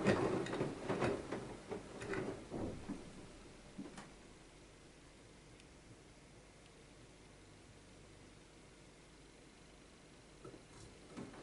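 Water sloshes and splashes inside a turning washing machine drum.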